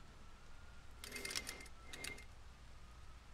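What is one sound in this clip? Game sound effects chime and whoosh.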